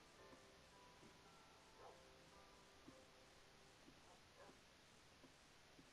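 Footsteps tap softly on stone at a steady walking pace.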